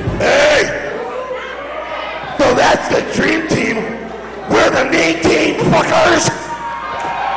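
A man shouts loudly into a microphone through loudspeakers, in a hall that echoes.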